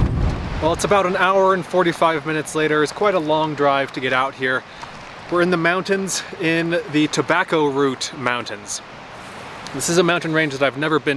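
A young man talks calmly and close by, outdoors.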